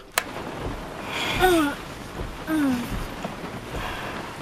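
Rain patters on a car window.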